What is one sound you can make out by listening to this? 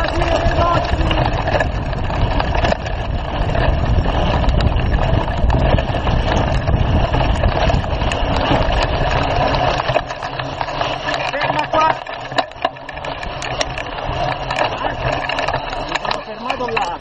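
Wind rushes loudly past a fast-moving bicycle.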